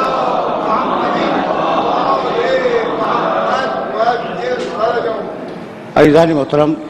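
A large crowd of men chants together in a hall.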